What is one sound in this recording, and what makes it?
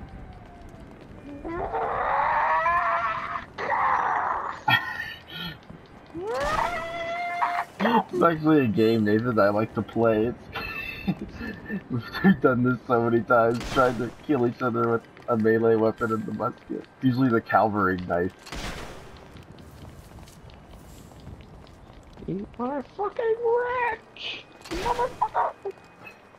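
Pistol shots crack out now and then.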